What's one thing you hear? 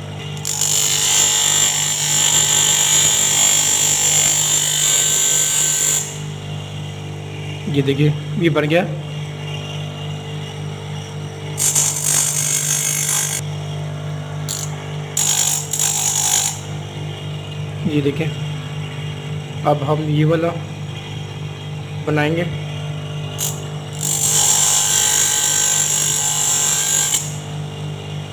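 A lens grinds with a harsh hiss against a spinning polishing wheel, in bursts.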